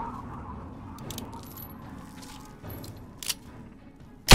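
A revolver is reloaded with metallic clicks.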